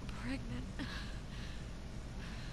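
A young woman speaks softly and shakily.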